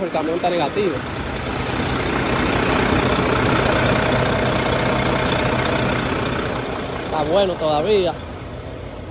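A truck engine idles with a steady hum.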